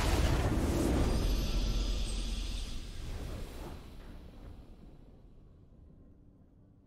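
A triumphant fanfare swells and then fades away.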